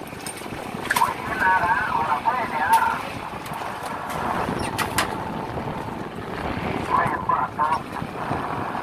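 A line hauler reel squeaks and whirs.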